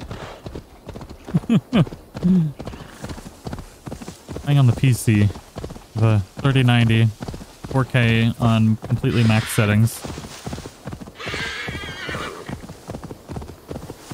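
A horse gallops, its hooves thudding on the ground.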